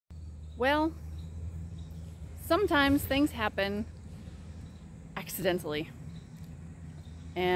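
A woman speaks close up, calmly and with pauses.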